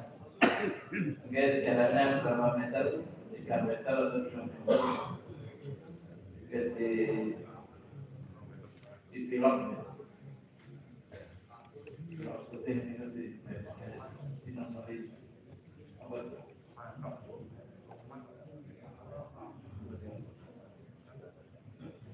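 Men talk in conversation.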